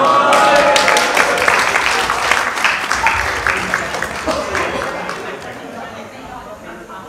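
A crowd cheers and claps loudly, then fades.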